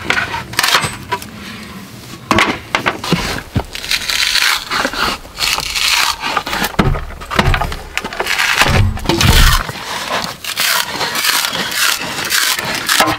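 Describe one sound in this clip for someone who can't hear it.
A hatchet knocks into wood, splitting it with sharp cracks.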